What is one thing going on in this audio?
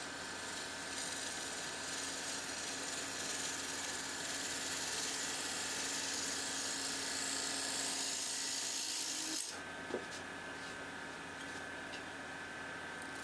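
A wood lathe hums steadily as it spins.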